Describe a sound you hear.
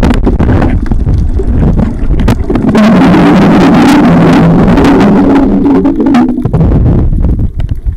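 A swimmer breathes loudly through a snorkel underwater.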